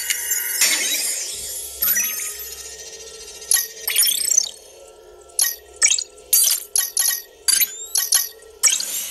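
Bright electronic chimes and whooshes play in quick bursts from a small speaker.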